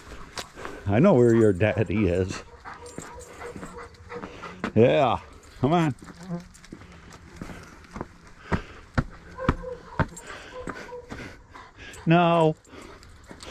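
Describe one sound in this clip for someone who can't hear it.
A dog whines and howls nearby in short bursts.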